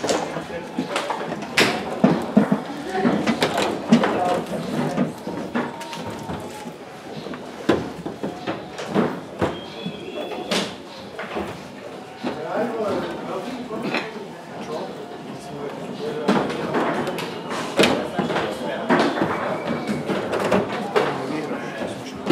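Metal rods rattle and slide as players spin them.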